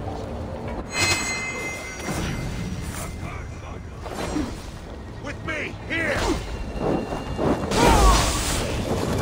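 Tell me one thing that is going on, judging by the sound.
Blows and impacts land in a fight.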